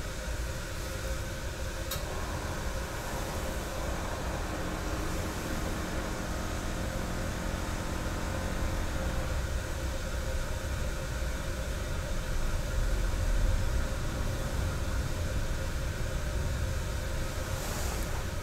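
Cloth rustles softly as a cloth is folded.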